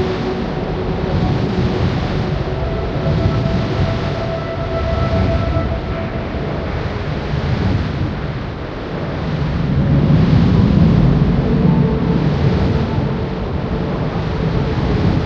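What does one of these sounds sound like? Fire roars and crackles on a burning ship.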